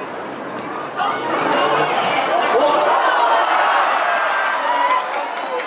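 A crowd cheers loudly outdoors.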